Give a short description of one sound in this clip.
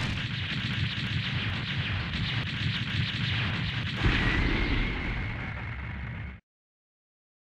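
Explosions rumble and crackle in rapid bursts.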